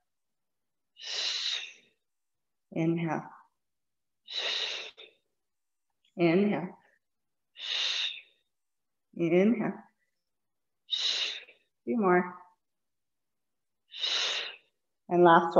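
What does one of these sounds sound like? A woman breathes out sharply and audibly at a steady rhythm.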